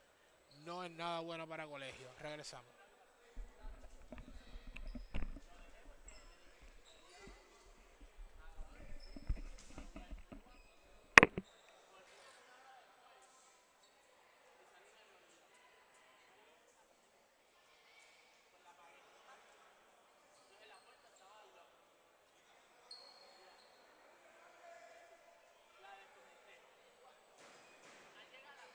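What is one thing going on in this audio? Adults talk quietly at a distance in a large echoing hall.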